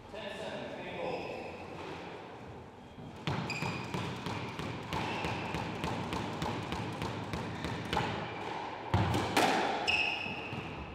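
Sports shoes squeak on a wooden court floor.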